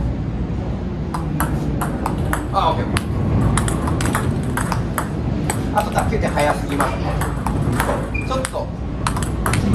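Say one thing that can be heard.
A table tennis ball clicks on paddles and the table in a quick rally.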